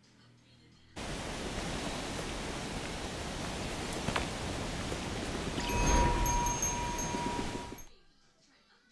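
Water flows steadily nearby.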